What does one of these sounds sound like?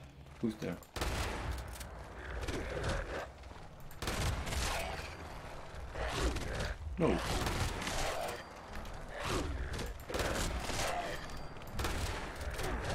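A shotgun fires repeatedly with loud blasts.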